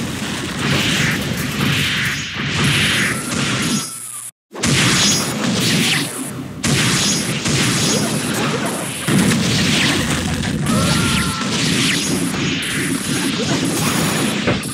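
Rapid game hit effects crash and burst without a break.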